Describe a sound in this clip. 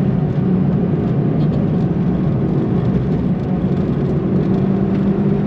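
Tyres roll on smooth asphalt.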